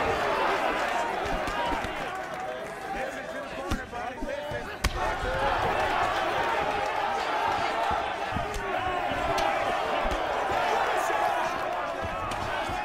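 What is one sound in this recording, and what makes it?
Punches land on a body with dull thuds.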